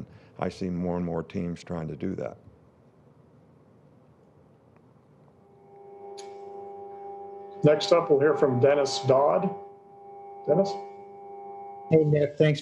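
An older man speaks calmly into a microphone, pausing between phrases.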